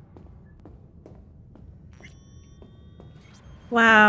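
Footsteps tap softly and steadily on a hard floor.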